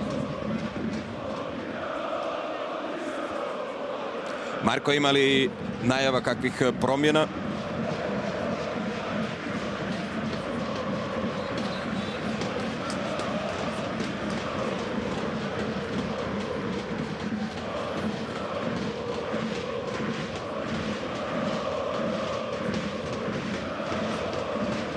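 A large stadium crowd chants and sings in the open air.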